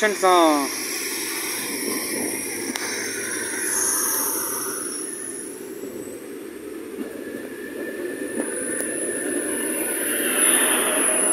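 A train rolls past close by, its wheels rumbling and clattering on the rails.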